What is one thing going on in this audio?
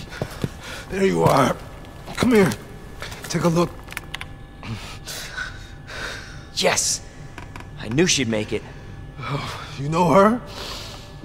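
A man speaks weakly and breathlessly, close by.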